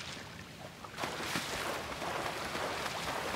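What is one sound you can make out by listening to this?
Water splashes loudly as a swimmer thrashes.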